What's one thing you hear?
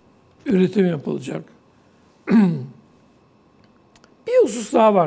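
An elderly man speaks calmly into a close microphone, in short phrases with pauses.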